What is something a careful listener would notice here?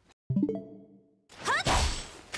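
A short electronic chime rings out.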